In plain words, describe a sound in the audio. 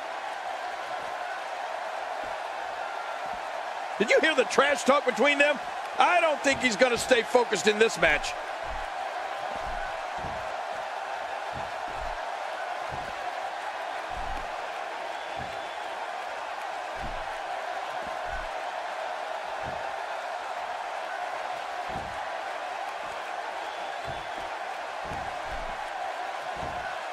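A large arena crowd murmurs and cheers steadily.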